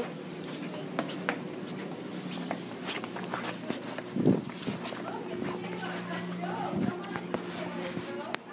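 Fabric rustles and bumps close by.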